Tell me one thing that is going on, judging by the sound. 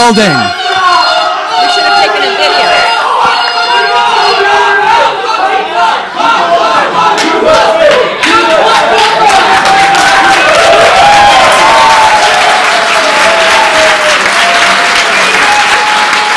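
A large crowd shouts and cheers loudly in an echoing hall.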